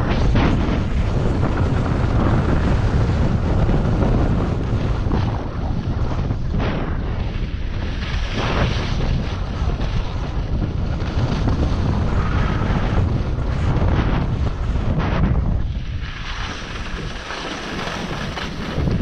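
Skis carve and scrape over packed snow.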